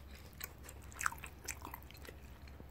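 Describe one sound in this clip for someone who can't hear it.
A child slurps noodles.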